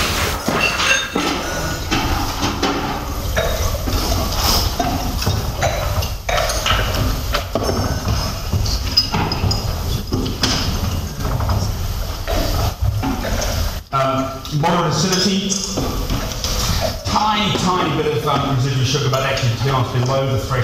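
A man speaks steadily and clearly.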